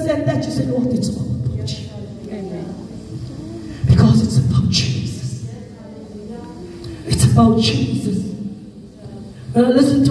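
A woman prays fervently into a microphone, heard through loudspeakers in an echoing room.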